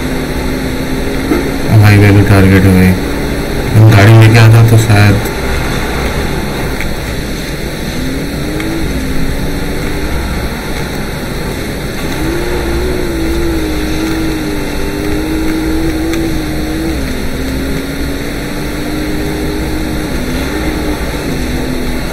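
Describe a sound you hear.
A motorcycle engine hums and changes pitch.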